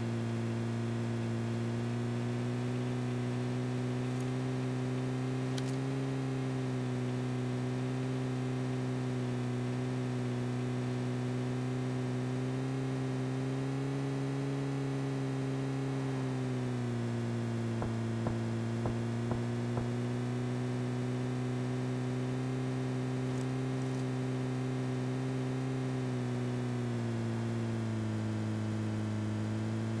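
A car engine drones steadily, rising and falling in pitch as it speeds up and slows down.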